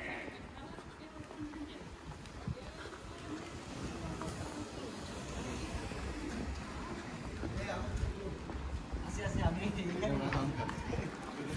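Low city street noise rumbles outdoors.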